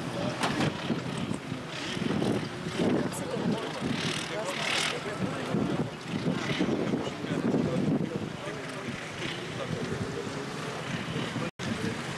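A quad bike engine revs in bursts.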